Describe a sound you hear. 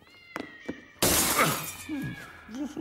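Glass smashes with a sharp crash.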